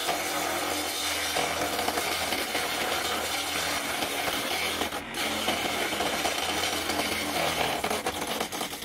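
An electric motor hums steadily as a small lathe spins.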